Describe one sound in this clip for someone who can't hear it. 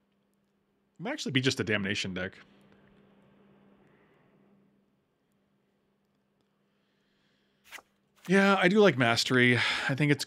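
A middle-aged man speaks with animation close to a microphone.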